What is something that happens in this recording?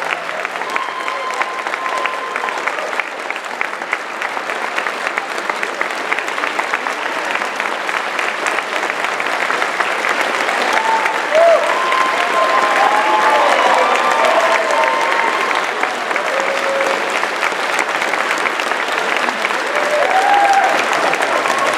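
A large audience claps loudly and steadily in a big hall.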